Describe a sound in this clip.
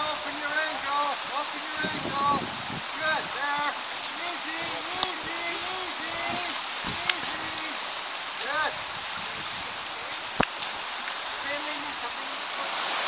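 A man talks outdoors nearby.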